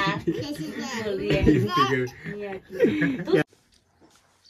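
Young girls laugh and chatter up close.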